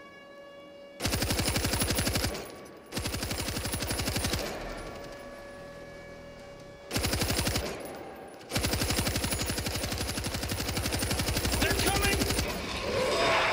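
A heavy machine gun fires in rapid, loud bursts.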